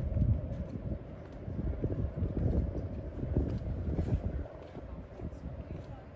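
Young men chat together at a short distance outdoors.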